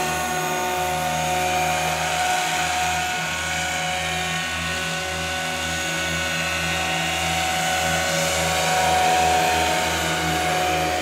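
A model helicopter's engine whines steadily as it flies nearby.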